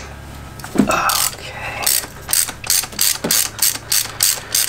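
A ratchet wrench clicks in quick, even bursts.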